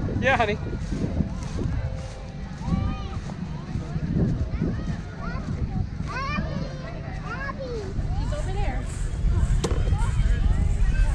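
Children call out and chatter in high voices nearby.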